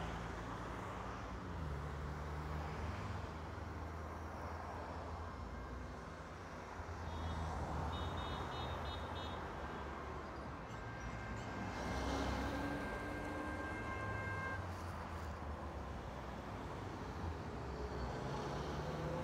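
Traffic hums and rushes past on a busy road outdoors.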